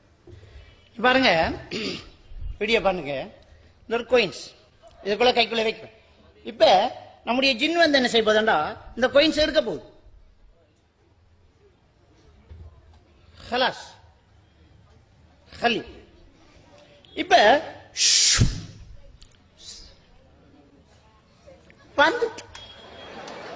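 A man preaches with animation through a microphone and loudspeakers, in bursts with pauses.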